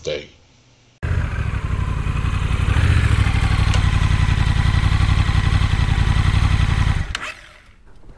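A motorcycle engine idles with a deep, steady rumble.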